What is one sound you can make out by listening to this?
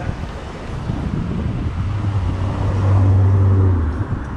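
A car engine passes close by, swelling loudly.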